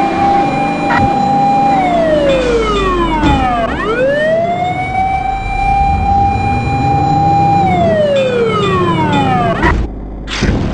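A fire engine siren wails, slowly falling and rising in pitch.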